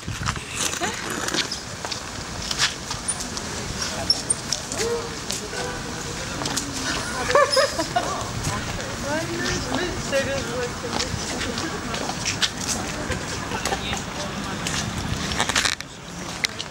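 Footsteps shuffle and scuff on paving stones.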